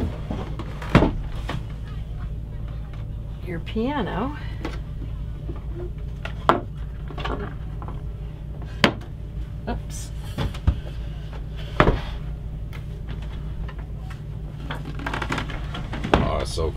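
Wooden panels knock and clatter as they are lifted and set down.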